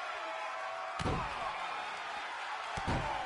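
Heavy bodies thud against a wrestling ring mat.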